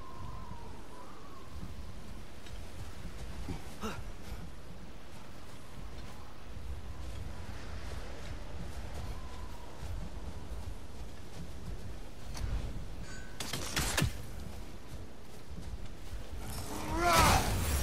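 Heavy footsteps crunch through snow.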